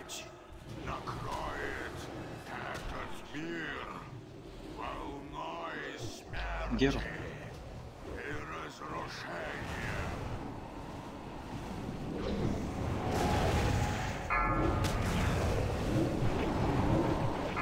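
Magic spells whoosh and crackle in a busy battle.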